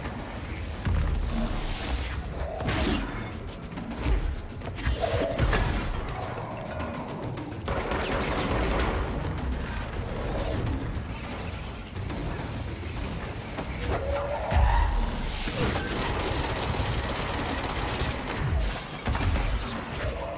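Explosions boom and debris clatters.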